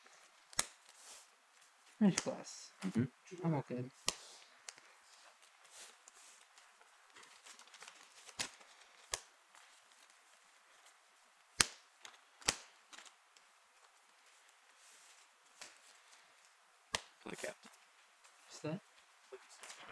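Playing cards tap and slide onto a table mat.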